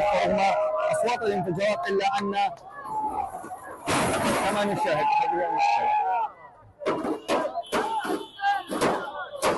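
Men clatter and scrape a wrecked car's metal body.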